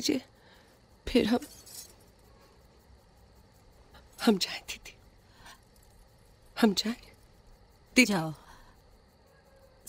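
A young woman speaks quietly and tensely nearby.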